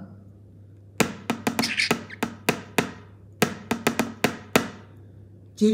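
A walnut taps repeatedly against a tin lid.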